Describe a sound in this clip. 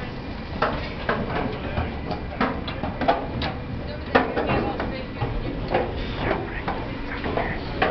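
Adults talk in the background.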